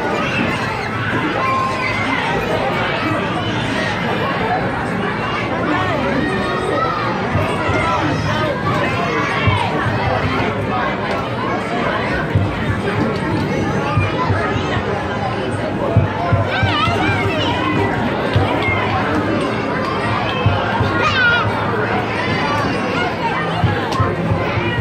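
A crowd of people chatters around.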